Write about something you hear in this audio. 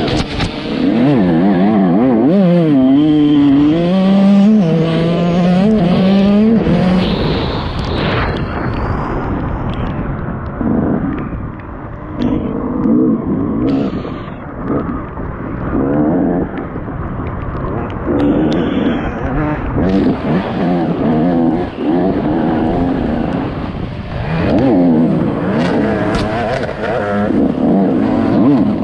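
A dirt bike engine revs hard and shifts through the gears.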